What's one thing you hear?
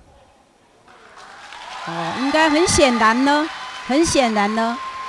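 A crowd cheers and claps in a large hall.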